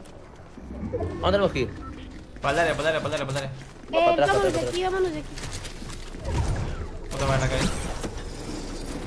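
A young man talks with animation into a nearby microphone.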